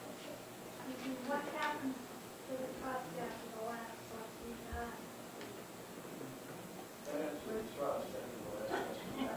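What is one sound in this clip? An elderly man speaks into a microphone at a panel.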